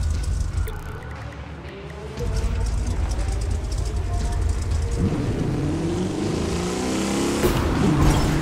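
A truck engine hums and revs as the truck drives along.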